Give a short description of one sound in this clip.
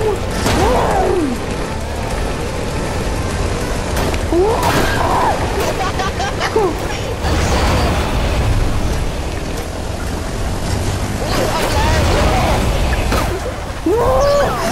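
A quad bike engine hums and revs steadily.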